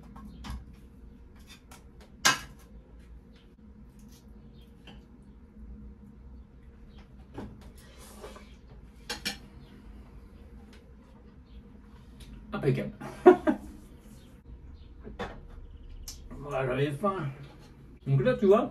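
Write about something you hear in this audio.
A knife and fork scrape and clink on a plate.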